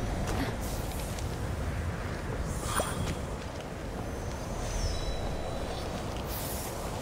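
Footsteps crunch quickly on snow and stone.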